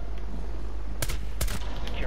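A rifle fires a loud shot.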